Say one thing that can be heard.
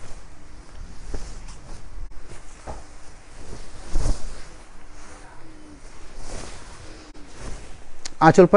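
Cloth rustles and swishes as it is unfolded and shaken out.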